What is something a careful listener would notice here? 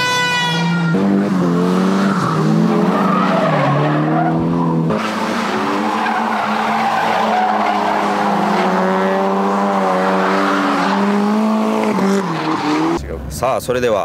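Car engines rev hard and roar.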